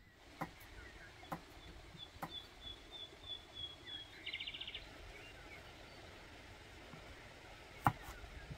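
A knife chops carrots on a wooden board with sharp knocks.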